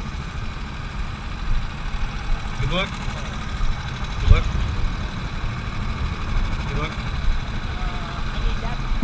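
Go-kart engines idle with a low rumble.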